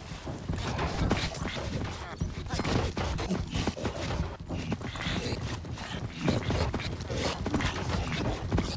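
Blows land with dull thuds in quick succession.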